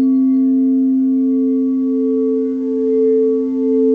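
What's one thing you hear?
A mallet rubs around a bowl's rim, making a slowly swelling tone.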